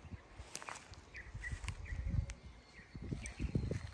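Leafy branches rustle as a hand brushes through a bush.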